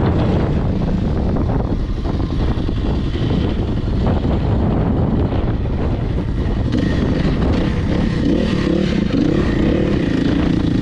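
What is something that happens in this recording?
A dirt bike engine roars up close, revving as it rides.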